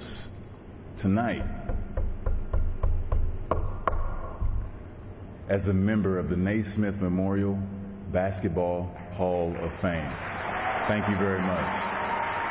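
A man speaks with emotion into a microphone.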